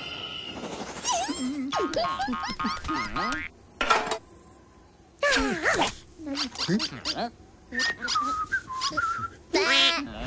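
Cartoon animal characters babble and chatter in high, squeaky voices.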